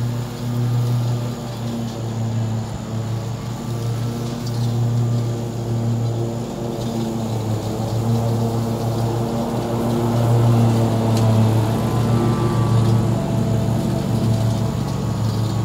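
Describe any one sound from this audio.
Mower blades cut through grass.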